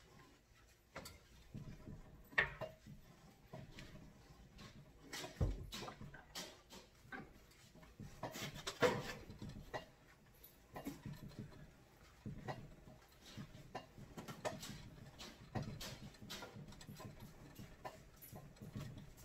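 Metal tools clink and scrape against a vise.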